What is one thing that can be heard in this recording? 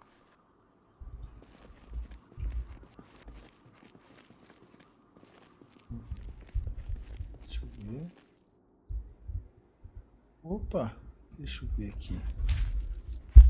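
A young man talks casually and close into a microphone.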